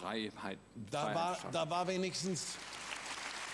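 A man speaks animatedly into a microphone.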